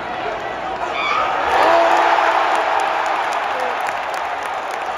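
A crowd roars louder for a moment and then settles.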